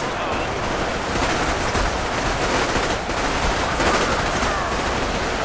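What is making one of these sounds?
Explosions boom and crash several times.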